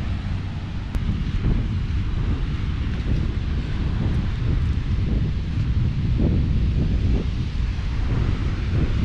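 Footsteps crunch on soft sand.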